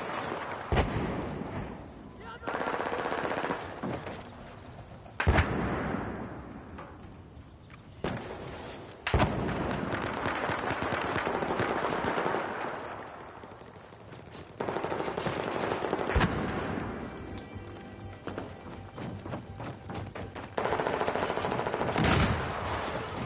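A rifle fires loud single shots that echo and roll away.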